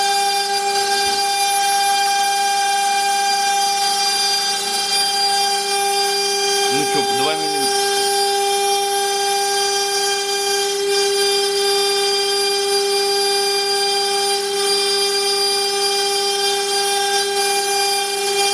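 A machine spindle whines with a steady high-pitched hum.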